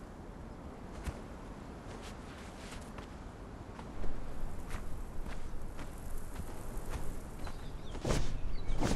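Footsteps crunch steadily on dry sand and gravel.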